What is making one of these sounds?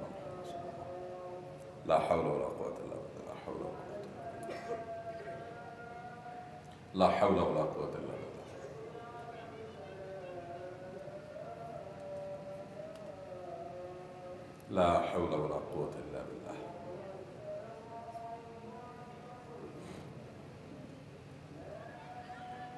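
A man recites in a melodic chanting voice through a microphone, with echo.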